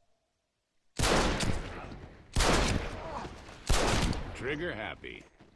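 A revolver fires several shots.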